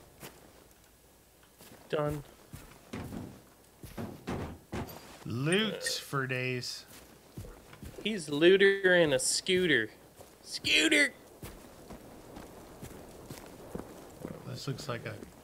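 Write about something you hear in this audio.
Footsteps crunch through grass and onto a road.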